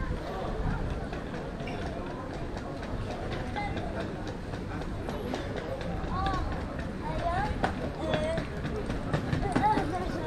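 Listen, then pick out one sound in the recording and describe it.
A crowd of people chatters at a distance outdoors.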